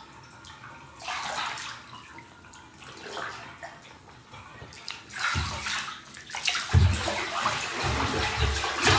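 Water sloshes and splashes in a filled bathtub.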